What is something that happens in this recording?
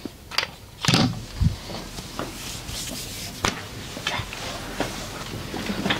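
A cloth cape rustles as it is wrapped and fastened.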